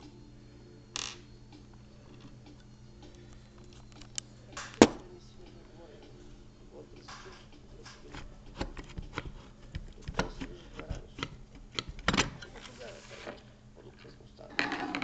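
Metal parts click and clack as a hand works a lock mechanism.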